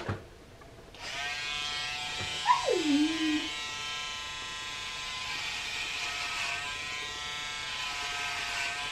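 Electric hair clippers buzz through hair.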